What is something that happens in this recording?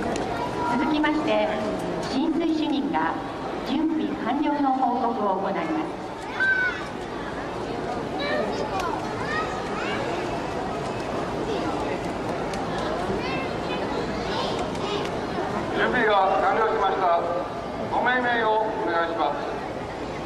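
Men call out loudly nearby.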